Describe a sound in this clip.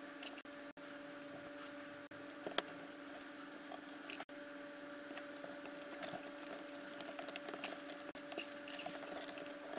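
Wires click softly as they are pushed into a breadboard.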